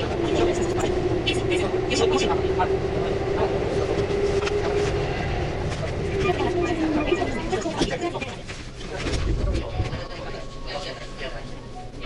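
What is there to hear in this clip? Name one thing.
A train rumbles through a tunnel into a station.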